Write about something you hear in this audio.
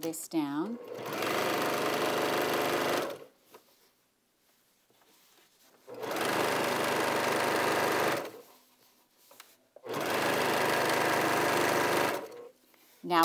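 A sewing machine whirs rapidly in bursts.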